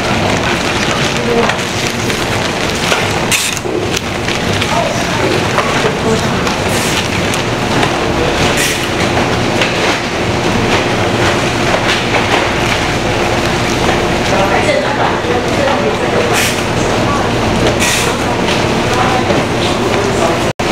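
Paper wrappers crinkle as hands fold them.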